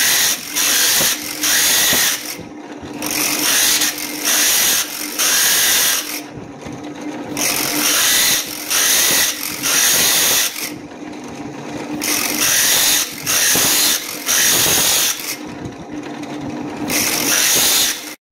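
A spinning grinding wheel whirs and hisses in repeated bursts.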